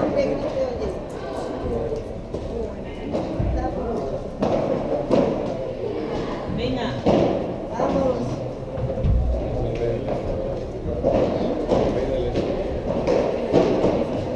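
Paddle rackets hit a ball with sharp pops in a large echoing hall.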